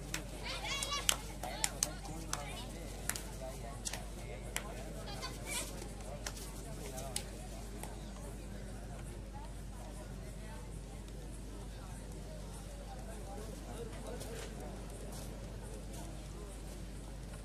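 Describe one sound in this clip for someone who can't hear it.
A crowd murmurs and shouts in the background.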